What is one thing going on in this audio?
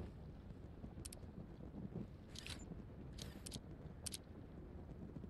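Short electronic clicks sound several times.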